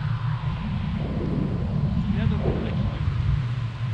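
A man speaks briefly, close by, over the wind.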